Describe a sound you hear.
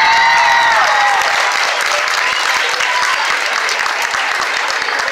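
An audience claps hands in applause.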